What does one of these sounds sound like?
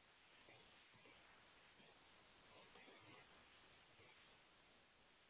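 A man speaks calmly and faintly through a computer microphone, as if on an online call.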